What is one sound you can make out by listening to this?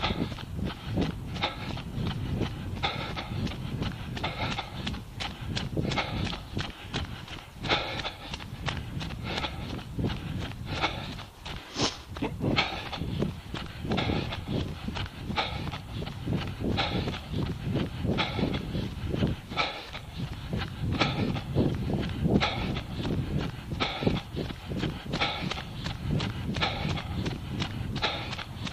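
Footsteps crunch steadily on snow-covered gravel.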